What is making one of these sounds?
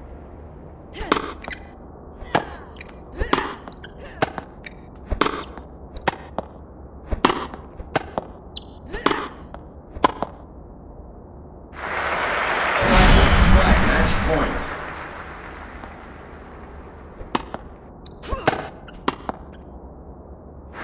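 Tennis rackets hit a ball back and forth with sharp pops.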